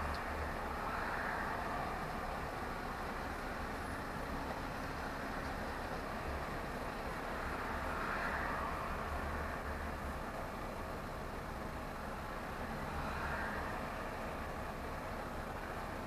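A bus engine idles and rumbles steadily from inside the vehicle.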